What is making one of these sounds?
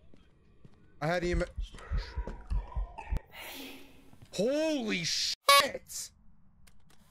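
A man speaks loudly and excitedly through a microphone.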